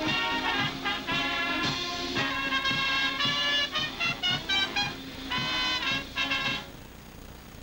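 A brass band plays a lively march outdoors.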